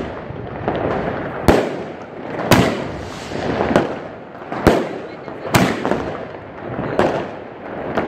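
Fireworks crackle and hiss.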